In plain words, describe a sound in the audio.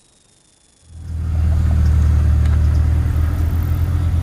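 A car engine rumbles loudly up close.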